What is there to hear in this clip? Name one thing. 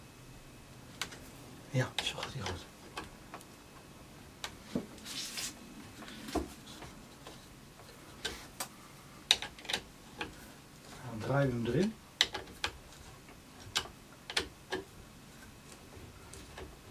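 Metal parts click and clink as hands fit them together.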